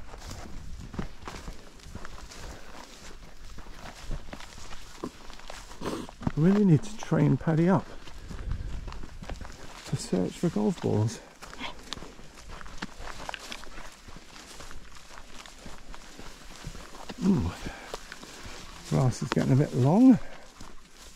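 Footsteps crunch and rustle through dry grass.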